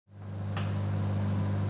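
A button clicks.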